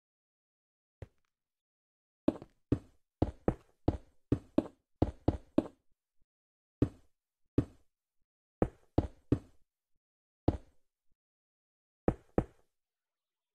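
Blocks are set down with short, dull knocks.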